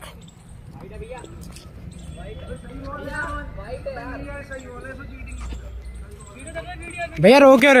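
Boys talk and call out to each other nearby, outdoors.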